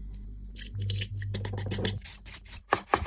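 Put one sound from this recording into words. A thin stream of liquid trickles into a bowl.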